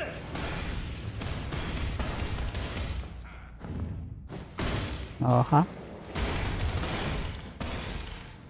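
Swords clash and magic blasts crackle in a fight.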